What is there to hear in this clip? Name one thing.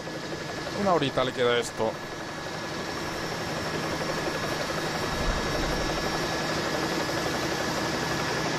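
Motorcycles rumble along a road.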